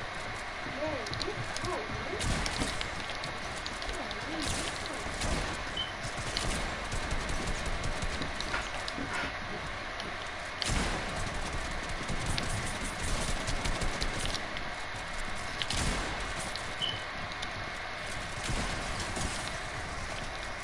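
Building pieces clatter into place.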